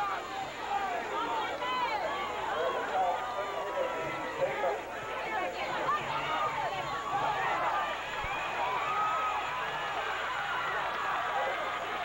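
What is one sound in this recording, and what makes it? A crowd of people shouts and cheers outdoors.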